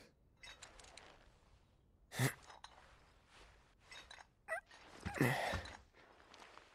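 A young man grunts as he struggles to stand.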